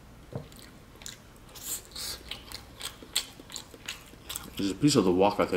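A young man chews and crunches food close to the microphone.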